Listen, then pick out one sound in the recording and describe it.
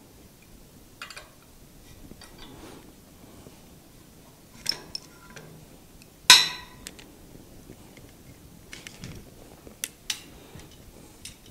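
A metal chain clinks and rattles against a frame.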